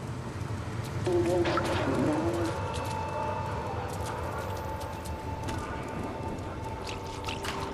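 A cat's paws patter softly on wet pavement.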